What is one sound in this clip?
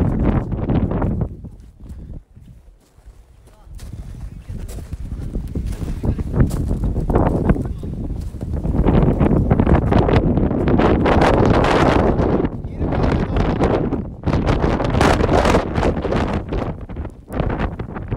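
Strong wind roars and buffets against a microphone outdoors.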